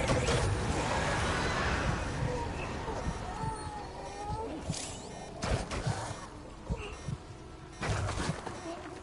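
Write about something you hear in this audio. Footsteps crunch on wet gravel.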